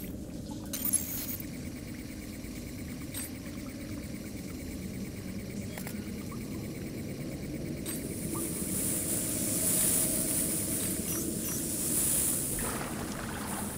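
A steady electronic hum drones softly.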